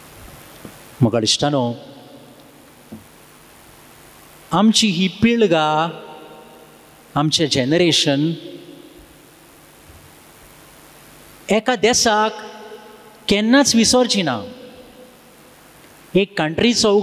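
A young man speaks with animation into a microphone in a reverberant hall, in bursts with pauses.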